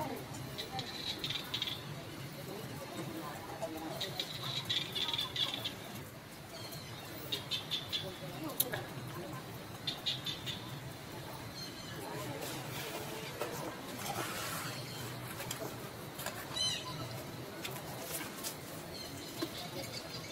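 Monkeys softly rustle each other's fur while grooming.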